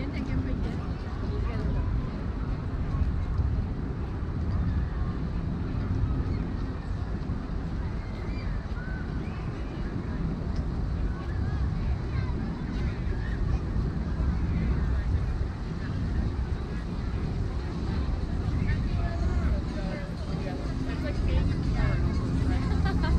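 Wind rumbles across the microphone.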